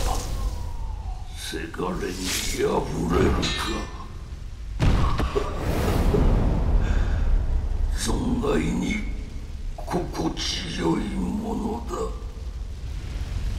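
Flames roar and crackle.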